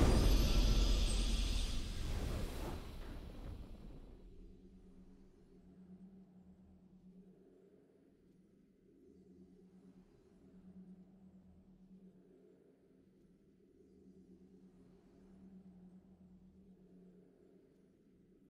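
A triumphant game fanfare swells, then fades into a soft, low drone.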